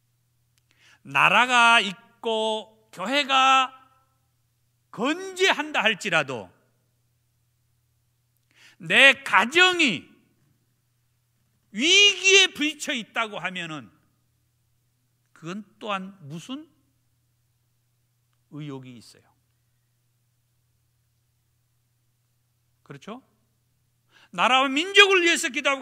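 A middle-aged man preaches with animation through a microphone, pausing between phrases.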